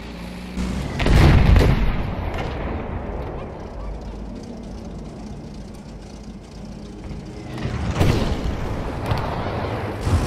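Loud explosions boom nearby.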